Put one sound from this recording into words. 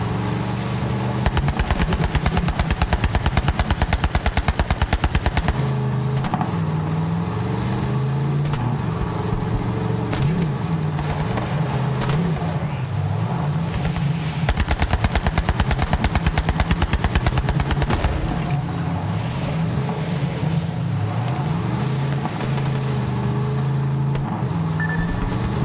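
An engine revs and whines, rising and falling in pitch.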